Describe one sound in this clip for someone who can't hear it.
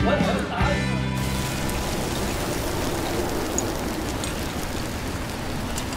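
Food sizzles on a grill.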